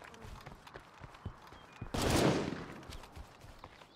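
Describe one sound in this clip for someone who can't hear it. Footsteps tread over grass and dirt.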